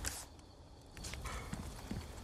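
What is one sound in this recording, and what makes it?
Footsteps crunch on wet ground.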